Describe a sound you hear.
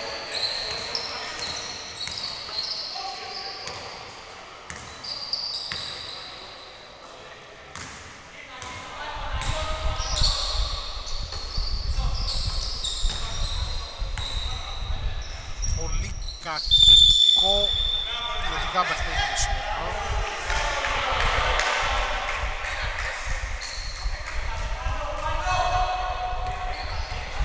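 Men call out to one another across an echoing hall.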